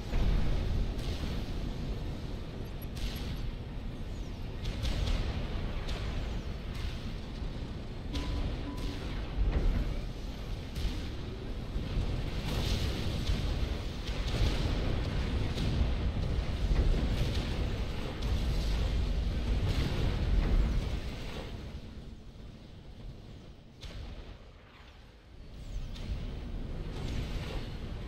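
Explosions boom and rumble over steady battle noise.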